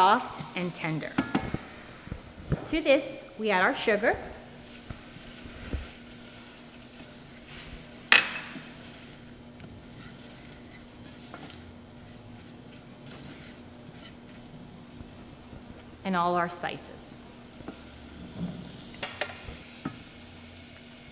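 A wooden spoon stirs and scrapes food in a metal pot.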